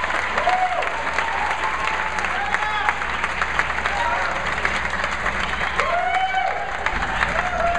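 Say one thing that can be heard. People in a crowd cheer and whoop loudly.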